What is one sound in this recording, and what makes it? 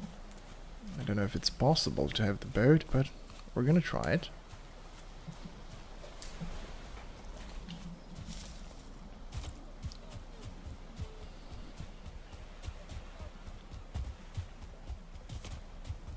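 Footsteps swish through grass at a steady walking pace.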